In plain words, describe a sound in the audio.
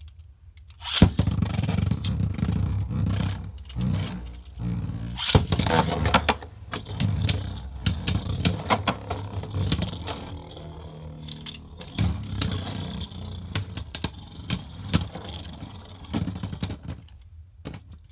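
Spinning tops whir and grind inside a plastic arena.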